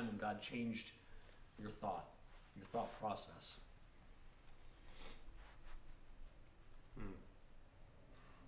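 A man talks calmly and with animation, close to a microphone.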